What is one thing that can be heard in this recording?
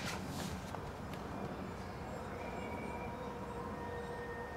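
A shoe rustles and taps as it is handled.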